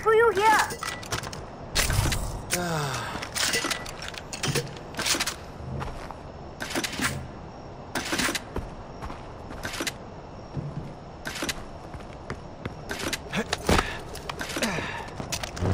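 Short clicks and clacks sound as ammunition is picked up.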